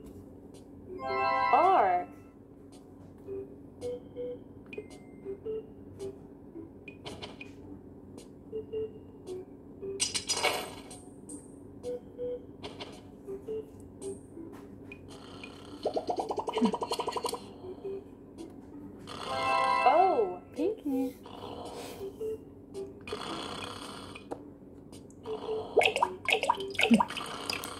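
A tablet game plays cheerful chimes and sound effects through a small speaker.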